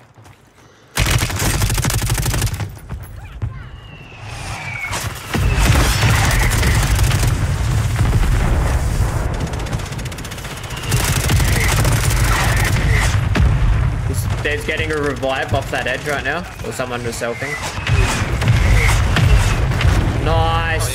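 Rapid gunfire crackles loudly.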